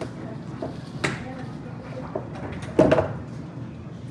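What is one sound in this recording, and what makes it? Metal trays scrape and clatter onto shelves.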